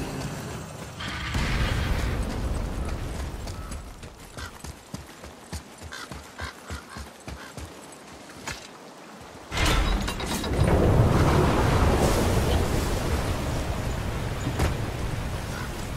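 Footsteps crunch steadily over stone and gravel.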